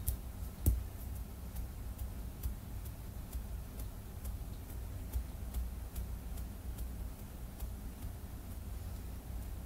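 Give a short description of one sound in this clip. Fingernails tap quickly and lightly on a plastic phone case.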